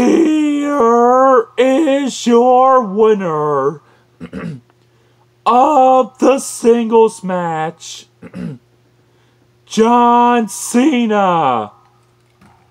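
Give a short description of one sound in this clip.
A young man speaks close by with animation, in a drawn-out announcing voice.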